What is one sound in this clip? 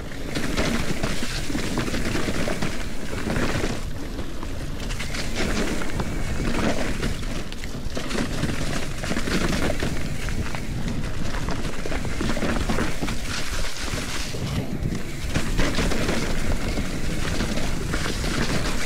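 Wind buffets the microphone as the bike rides at speed.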